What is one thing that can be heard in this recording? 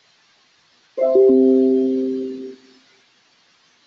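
A computer notification chime rings once and fades.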